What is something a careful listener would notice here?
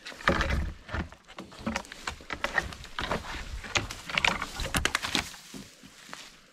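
Dry branches scrape and crackle as they are pushed aside.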